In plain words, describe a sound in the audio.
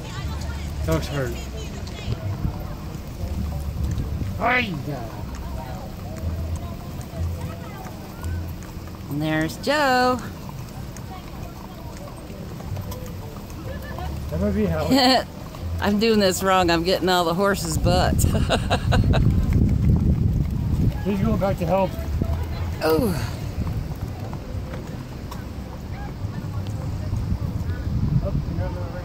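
Horses' hooves clop as they walk on wet pavement.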